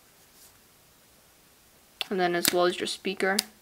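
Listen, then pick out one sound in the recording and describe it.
A phone's sliding keyboard clicks open.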